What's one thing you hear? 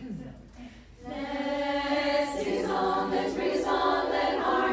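A women's choir begins singing in harmony.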